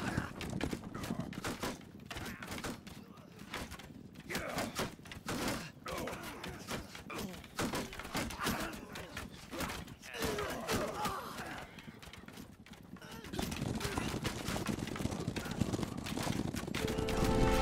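Hooves thud on sand as a horse gallops.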